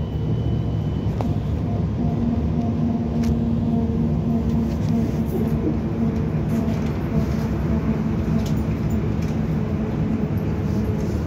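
Tyres roll over a road with a steady roar.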